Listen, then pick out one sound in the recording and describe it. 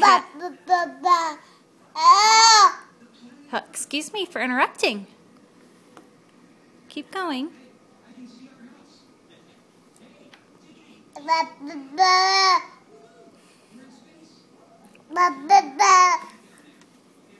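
A baby babbles and squeals loudly, close by.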